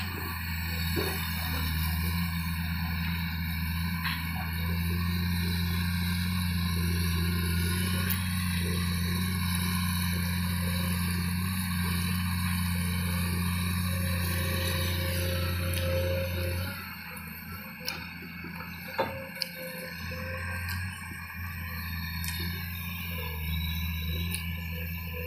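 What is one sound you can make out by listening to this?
An excavator's diesel engine rumbles steadily nearby, easing off for a few seconds before picking up again.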